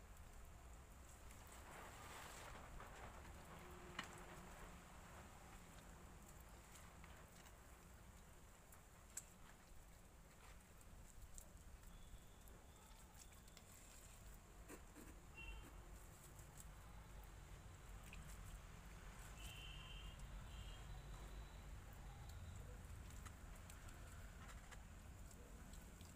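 A trowel scrapes and taps on wet mortar and bricks.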